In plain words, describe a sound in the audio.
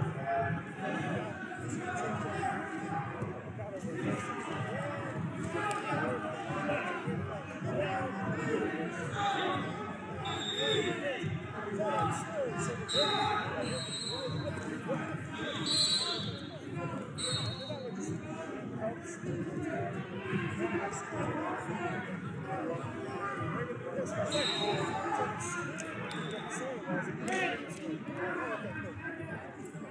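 Spectators shout and cheer.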